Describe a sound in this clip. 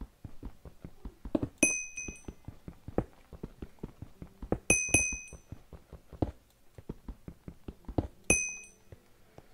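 A pickaxe chips rapidly at stone, with blocks cracking apart.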